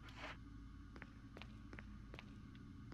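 Footsteps tap on a hard wet floor.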